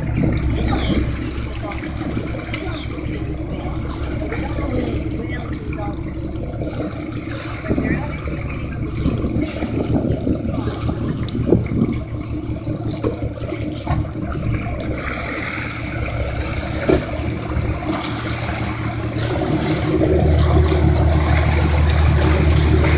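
Waves slosh and splash against a hull.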